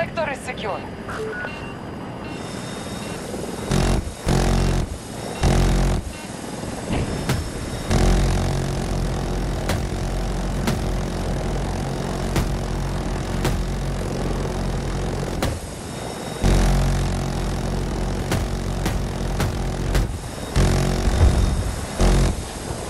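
A helicopter's engine and rotor drone loudly and steadily.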